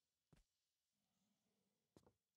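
A young man speaks briefly and quietly through a microphone.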